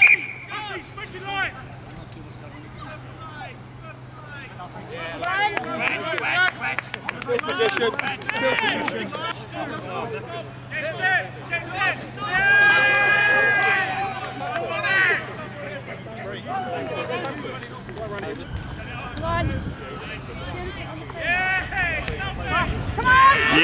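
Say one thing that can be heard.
Players shout and call to each other outdoors.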